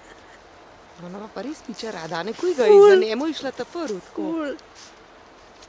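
A dog whines and howls loudly in play, outdoors.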